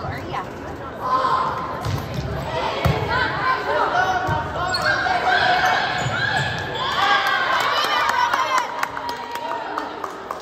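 Young women players shout and call out to each other in a large echoing gym.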